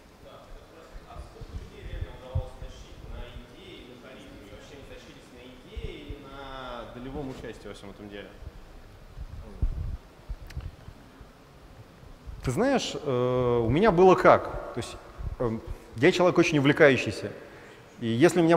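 A man talks calmly through a headset microphone in a large room.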